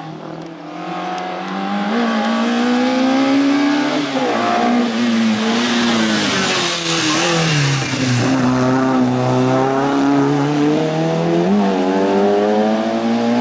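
A small car's engine revs hard and roars up a winding road, shifting gears as it passes close by.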